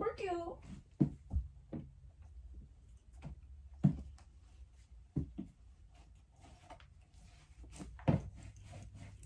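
Soft knocks and thuds sound as things are moved around.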